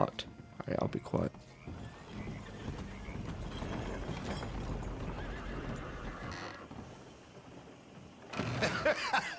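Wagon wheels rumble and creak over wooden boards.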